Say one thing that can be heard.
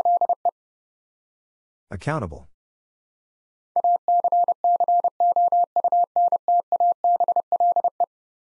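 A telegraph key taps out Morse code in steady, high beeps.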